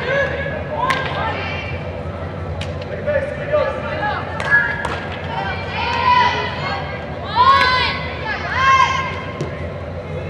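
Young women shout and call out across a large echoing indoor hall.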